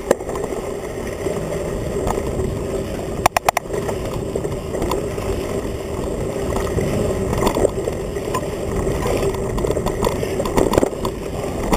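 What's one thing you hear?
A mountain bike rattles and clatters over a bumpy dirt trail.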